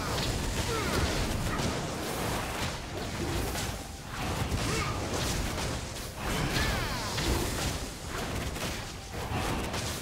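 A game dragon roars and growls.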